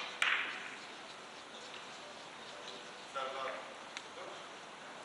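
Billiard balls click against each other and roll on the cloth.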